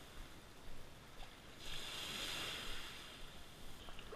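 Small waves wash softly onto a sandy shore.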